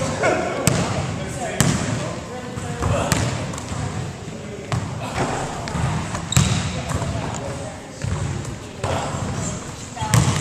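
A basketball bounces with sharp thuds that echo in a large hall.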